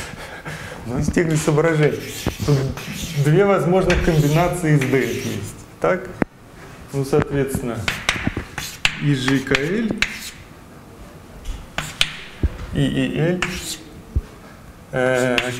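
A young man lectures calmly in an echoing room.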